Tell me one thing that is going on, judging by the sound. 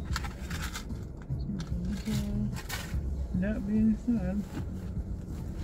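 A handbag rustles as it is rummaged through and lifted.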